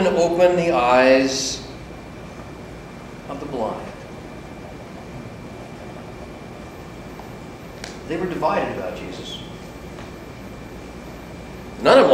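A middle-aged man speaks with animation in a room with a slight echo, pausing between phrases.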